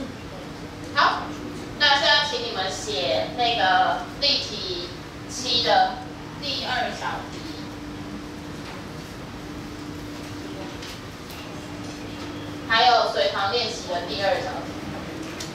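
A woman speaks clearly and with animation.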